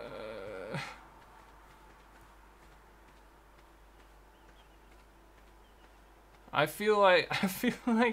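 Footsteps thud quickly on grass.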